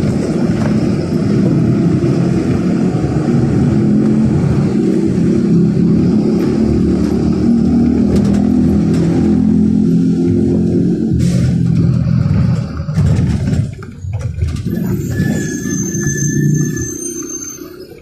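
A vehicle engine rumbles steadily while driving along a street, then quiets down.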